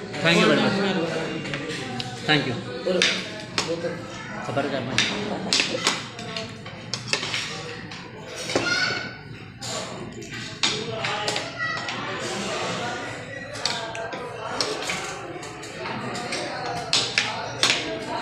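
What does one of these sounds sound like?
A metal spoon and fork clink on a plate.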